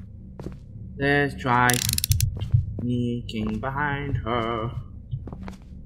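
A young man speaks close to a microphone, with animation.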